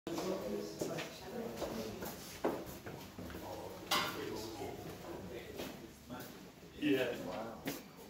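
Footsteps tap along a hard floor.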